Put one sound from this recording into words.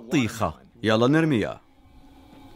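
A young man speaks with excitement close by.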